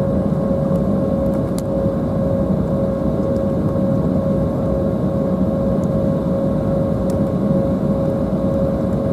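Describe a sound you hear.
An airliner's wheels rumble over the runway.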